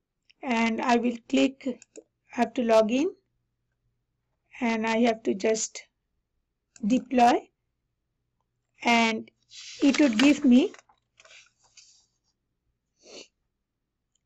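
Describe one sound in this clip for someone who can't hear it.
A woman talks calmly into a close microphone, pausing between phrases.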